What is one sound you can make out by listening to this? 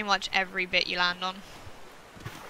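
A young person talks with animation into a close microphone.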